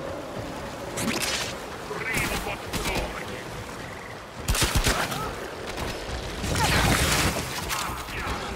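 A blade whooshes and slashes in quick strikes.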